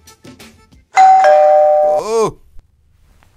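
A phone plays a loud electronic tone.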